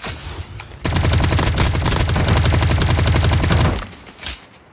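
Automatic gunfire rattles rapidly and loudly.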